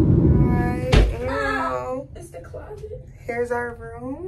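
A young woman talks cheerfully and close by.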